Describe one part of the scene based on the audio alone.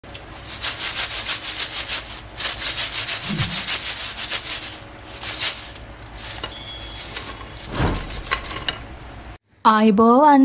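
Fried potato sticks rustle and clatter in a metal strainer.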